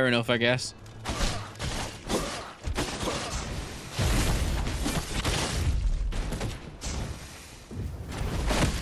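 Blade blows and heavy thuds clash in a fight.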